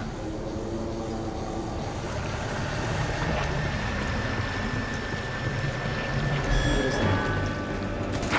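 Footsteps walk steadily on pavement.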